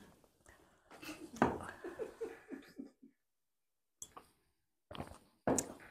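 An elderly woman sips tea from a glass.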